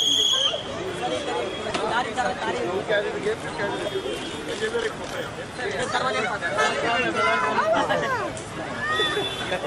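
A crowd of men chatters and calls out nearby.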